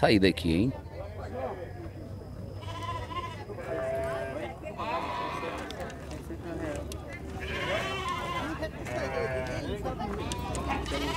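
Several men talk casually nearby outdoors.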